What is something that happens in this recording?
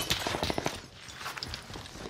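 A gun fires rapid shots close by.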